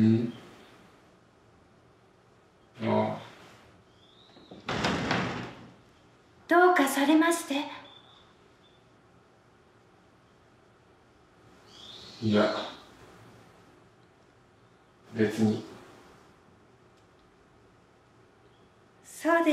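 A young woman speaks quietly in short phrases, close by.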